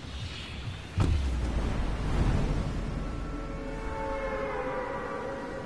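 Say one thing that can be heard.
Wind rushes loudly past a falling figure.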